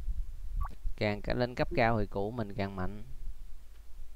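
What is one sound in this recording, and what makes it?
A short, bright video game melody plays.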